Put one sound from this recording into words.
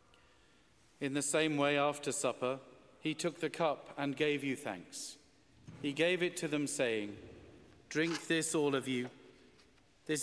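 A man chants in a steady sung voice through a microphone in a large echoing hall.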